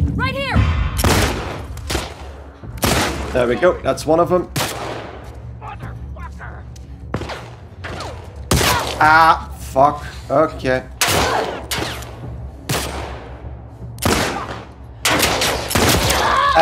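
Gunshots ring out sharply and echo in a large room.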